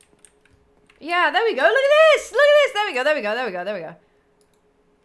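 A young woman squeals in a high voice.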